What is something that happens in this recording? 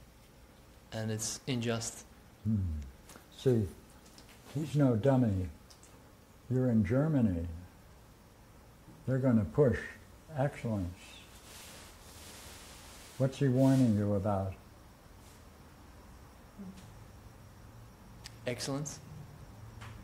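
An elderly man speaks calmly in short phrases with pauses, close by.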